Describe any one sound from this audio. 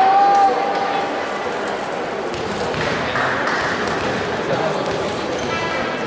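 Young women chatter and call out in a large echoing hall.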